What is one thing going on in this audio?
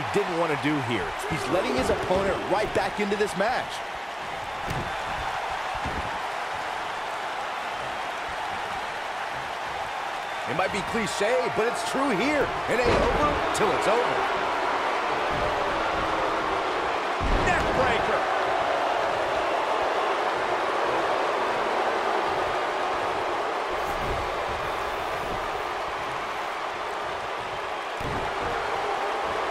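A large crowd roars and cheers steadily in a big echoing arena.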